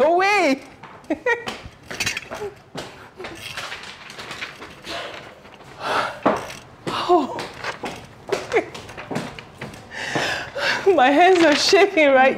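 A young woman speaks cheerfully, close by.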